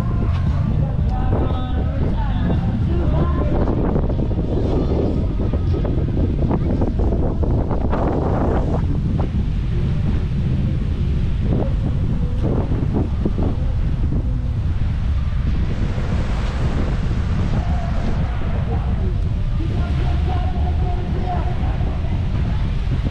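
Small waves lap gently on the shore.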